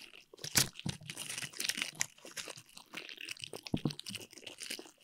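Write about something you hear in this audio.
Plastic decorations click and rustle as hands handle them.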